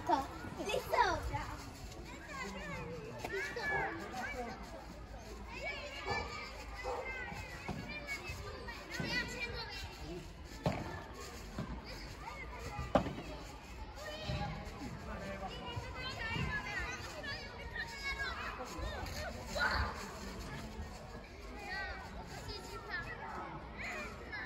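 Paddle rackets strike a ball with sharp pops.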